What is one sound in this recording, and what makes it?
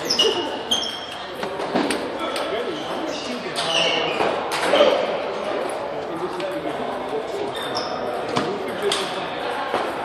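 Other ping-pong balls tap faintly in a large echoing hall.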